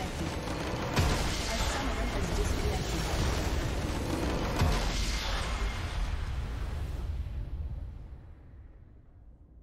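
A triumphant game fanfare swells and then fades out.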